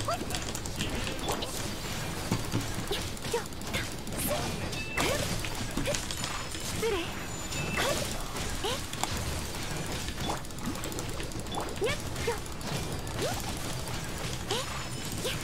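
Sword slashes whoosh and clang in quick succession.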